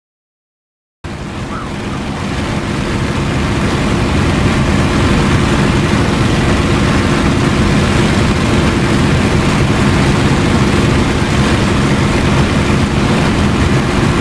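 A propeller aircraft engine roars loudly from inside the cockpit.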